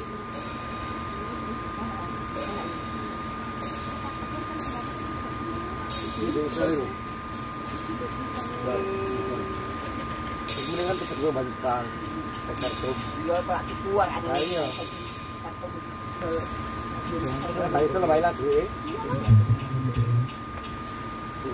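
A steady high tone hums from loudspeakers outdoors.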